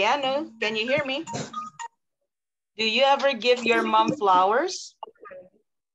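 A woman speaks clearly and with animation over an online call.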